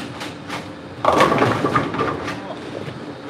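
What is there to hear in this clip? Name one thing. Bowling pins crash and clatter loudly in a large echoing hall.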